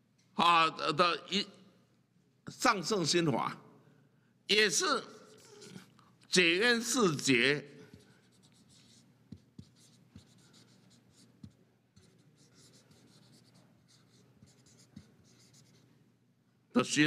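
A felt marker squeaks and scratches across paper.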